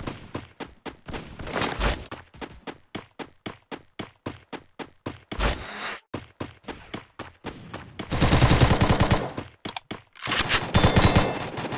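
Quick footsteps run over hard ground.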